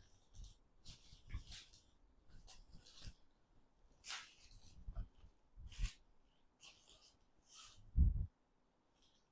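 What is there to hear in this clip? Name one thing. Fabric rustles and swishes as a cloth is unfolded and shaken.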